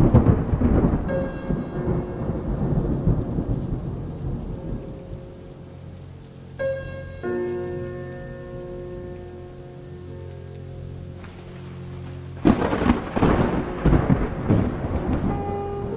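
Heavy rain pours down and splashes on a hard floor.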